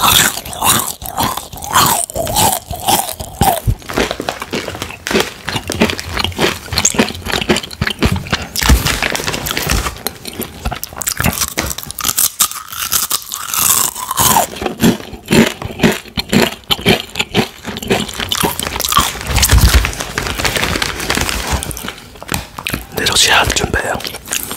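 A plastic snack bag crinkles loudly close up.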